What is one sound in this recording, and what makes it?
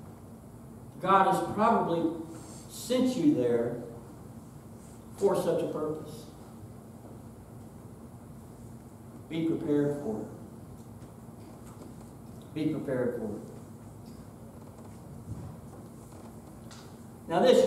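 A middle-aged man speaks slowly and deliberately, with long pauses.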